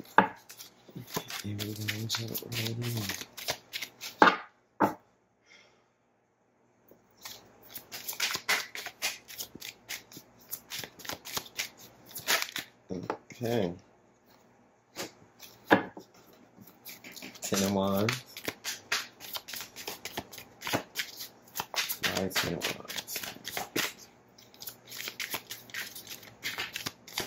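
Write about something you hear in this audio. Cards shuffle and flick in a pair of hands close by.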